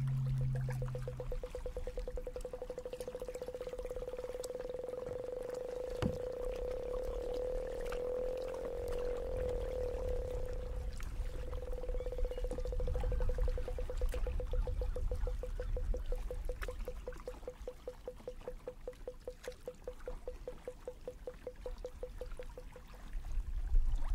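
Small waves lap and splash against the side of a kayak.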